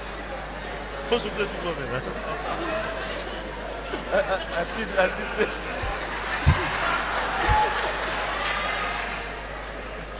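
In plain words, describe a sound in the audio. A large crowd laughs and murmurs.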